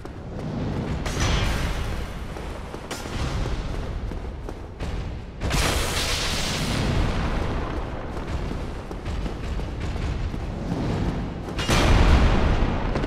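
Heavy blows crash loudly in a large echoing hall.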